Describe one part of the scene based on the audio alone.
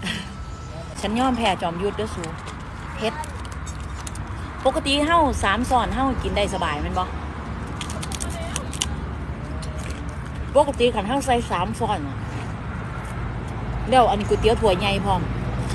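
A young woman talks with animation, close to the microphone.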